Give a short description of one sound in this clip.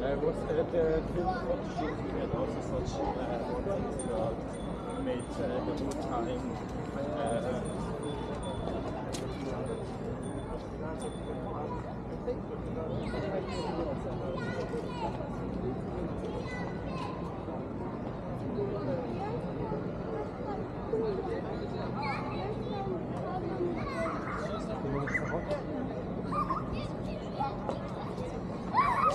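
Traffic hums steadily in the distance outdoors.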